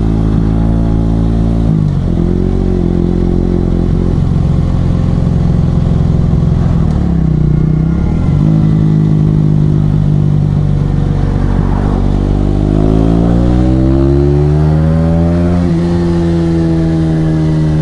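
A motorcycle engine hums loudly close by, shifting gears and revving up.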